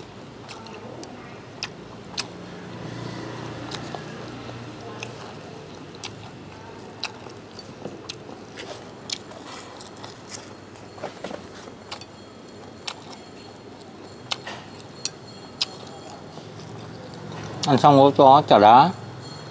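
Chopsticks click and tap against a ceramic plate.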